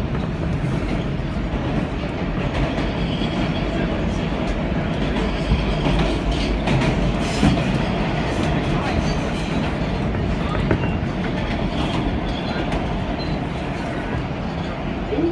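A subway train rumbles and rattles loudly along the tracks.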